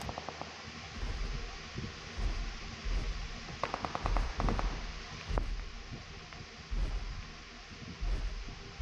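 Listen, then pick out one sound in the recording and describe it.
A wooden cart rumbles and creaks as it rolls along.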